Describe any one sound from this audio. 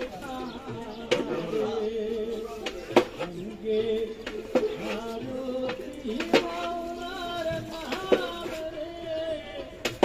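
A metal ladle scrapes and stirs inside a large metal pot.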